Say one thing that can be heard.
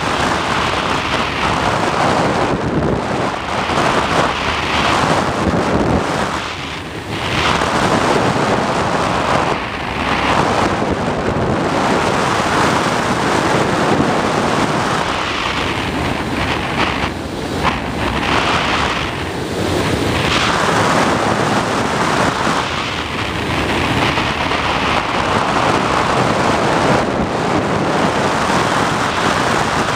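Wind rushes loudly past a gliding aircraft, rising and falling as it turns.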